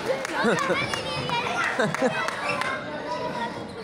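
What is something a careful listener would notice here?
Small balls bounce and clatter on a stage floor.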